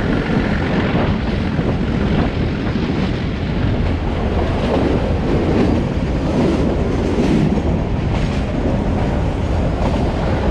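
A train rumbles and clatters steadily along the track.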